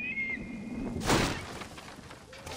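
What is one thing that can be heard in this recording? Feet land heavily on soft ground after a jump.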